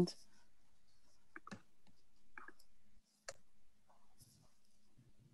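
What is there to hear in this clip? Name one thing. A young woman speaks quietly over an online call.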